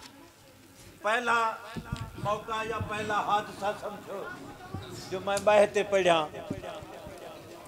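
An elderly man speaks with feeling into a microphone.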